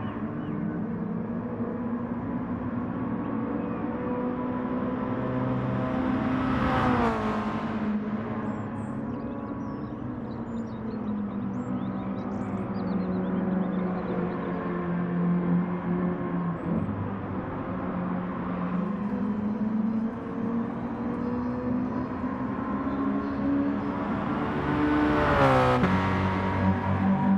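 A racing car engine drones steadily, its pitch rising and falling with the gears.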